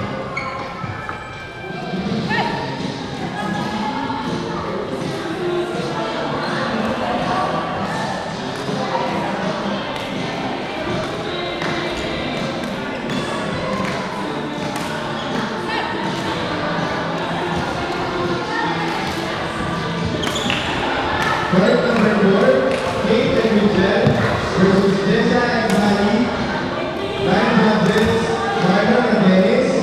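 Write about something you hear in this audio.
Many people chatter throughout in an echoing hall.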